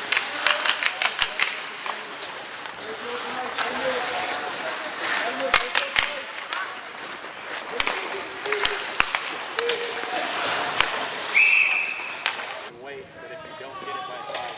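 Ice skates scrape and hiss across the ice.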